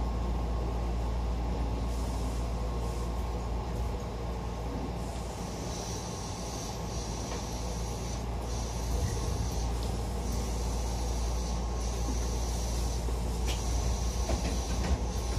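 A train's motor hums low and steady as the train pulls out.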